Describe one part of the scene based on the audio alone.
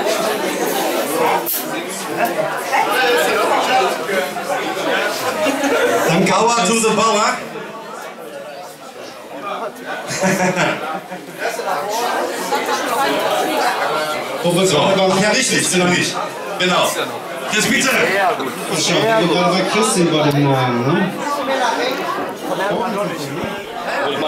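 A man sings through loudspeakers.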